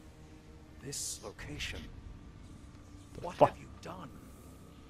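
A man with a deep voice asks sharply.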